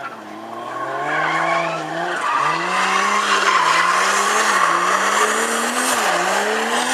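Tyres screech loudly on tarmac.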